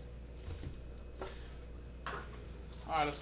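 Cardboard boxes are set down on a table with soft knocks.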